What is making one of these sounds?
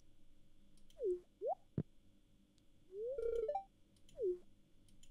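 Short electronic blips sound from a game.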